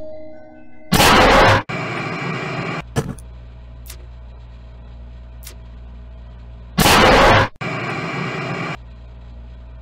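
Harsh static hisses in bursts.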